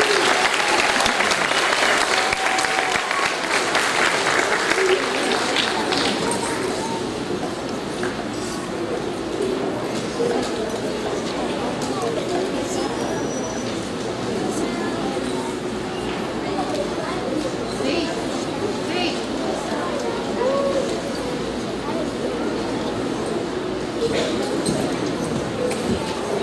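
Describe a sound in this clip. A crowd of children murmurs and chatters.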